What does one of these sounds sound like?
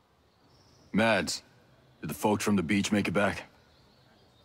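A man speaks with a deep voice, close by.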